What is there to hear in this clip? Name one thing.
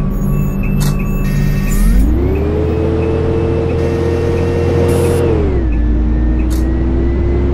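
A bus engine drones steadily, rising in pitch as it speeds up and then dropping back.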